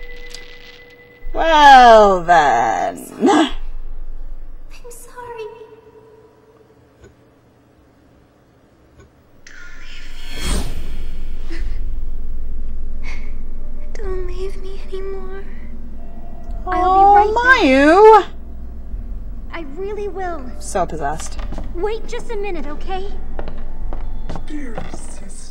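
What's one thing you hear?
A young woman speaks casually close to a microphone.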